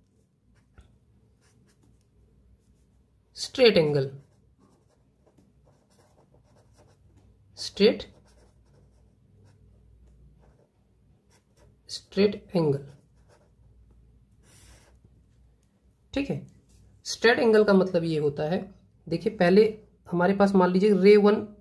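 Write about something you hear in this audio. A felt-tip marker squeaks softly across paper.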